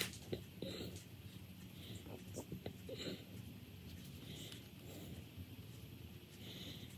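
Fingers softly squeeze and smooth wet clay.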